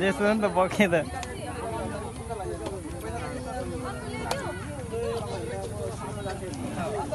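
Men chatter quietly in the background.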